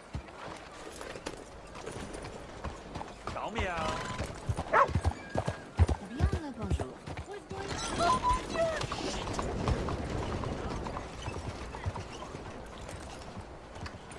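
A horse's hooves clop on a dirt street.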